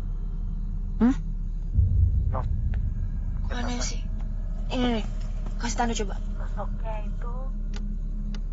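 A young woman speaks in a frightened, hushed voice close by.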